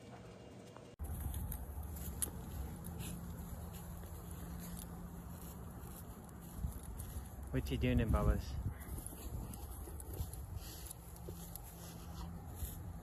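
A dog rolls on dry grass, rustling.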